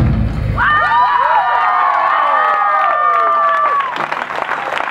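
Drums and cymbals crash loudly on a stage.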